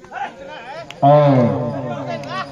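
A man shouts loudly and excitedly close by.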